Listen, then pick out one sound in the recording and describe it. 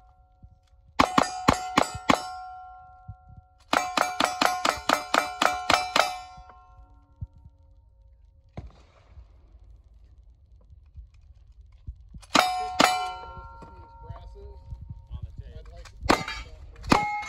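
Steel targets ring out with a metallic clang after each hit.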